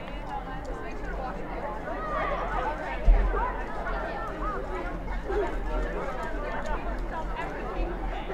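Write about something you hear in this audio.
Spectators chatter and call out outdoors.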